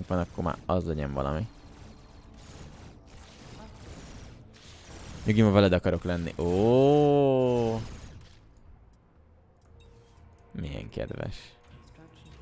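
A young man talks with animation close to a microphone, in short bursts with long pauses.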